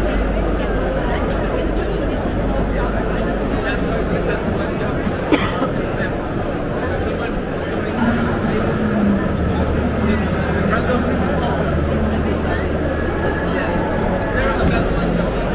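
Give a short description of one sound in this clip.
A crowd murmurs and chatters in a busy indoor hall.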